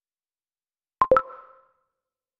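A short electronic chime sounds as a button is tapped.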